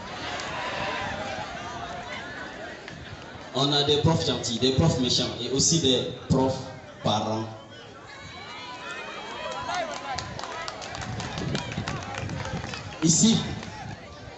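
A large crowd murmurs and chatters in the background.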